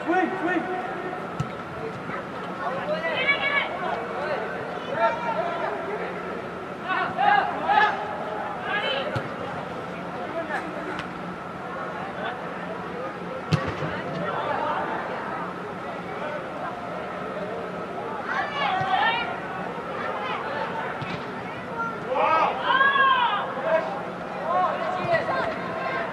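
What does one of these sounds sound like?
Young male players shout to each other in a large echoing hall.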